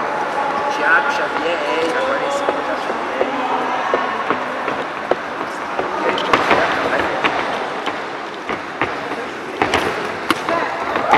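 Punches thud against boxing gloves.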